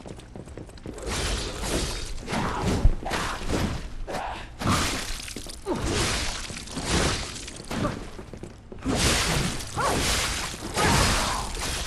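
Heavy blows strike with loud impacts.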